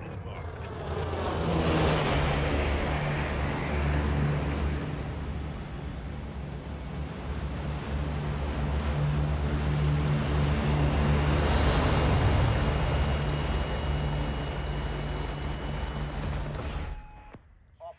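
A large propeller plane's engines drone loudly.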